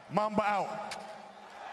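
A man speaks loudly into a microphone, heard through an arena's loudspeakers.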